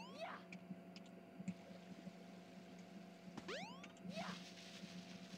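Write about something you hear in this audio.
Bright video game sound effects sweep upward in pitch.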